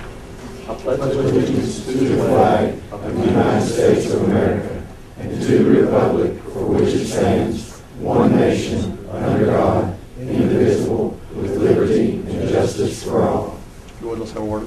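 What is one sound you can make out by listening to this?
A crowd of men and women recites together in unison in a room.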